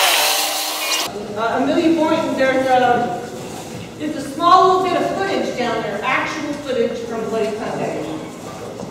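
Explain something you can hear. A woman speaks to an audience in an echoing hall.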